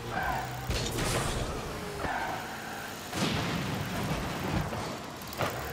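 A sporty car engine hums and whooshes steadily.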